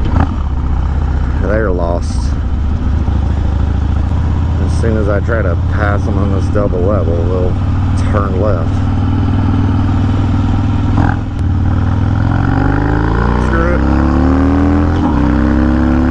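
A motorcycle engine rumbles steadily and revs up.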